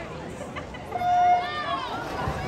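A starting beep sounds once, short and steady.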